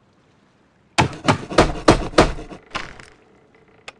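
Hammer blows knock on wood in quick succession.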